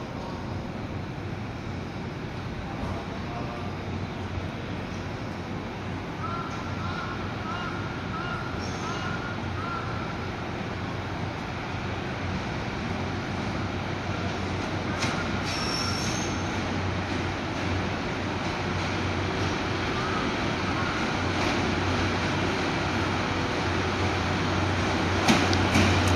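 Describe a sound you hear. A train rumbles closer along the tracks, growing steadily louder.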